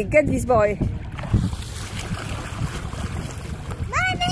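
Water splashes as a man dives in.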